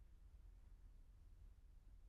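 A car drives slowly past on pavement nearby.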